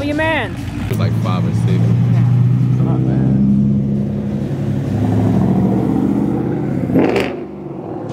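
A powerful engine idles with a deep steady rumble as a car rolls by.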